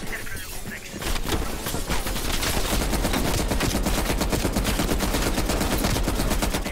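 A heavy machine gun fires in a rapid, steady burst.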